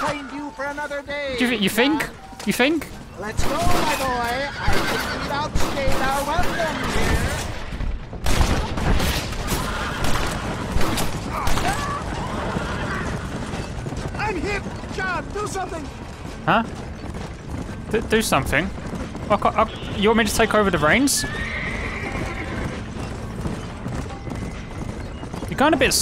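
Wagon wheels rumble over a dirt track.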